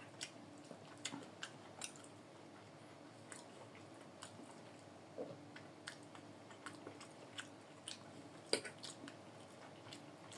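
A knife and fork click and scrape against a plate.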